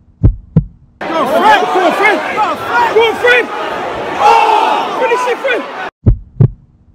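A large crowd of fans chants and sings loudly in a stadium.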